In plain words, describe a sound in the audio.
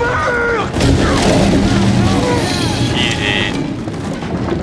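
A young man cries out in shock.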